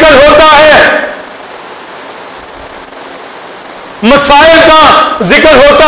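A middle-aged man preaches loudly and with passion into a microphone, heard through loudspeakers in an echoing hall.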